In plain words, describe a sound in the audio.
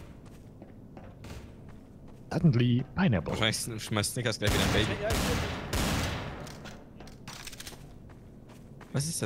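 Footsteps thud on hard stairs.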